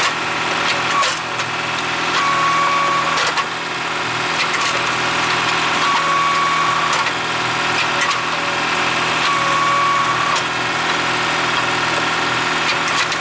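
A machine engine runs steadily throughout.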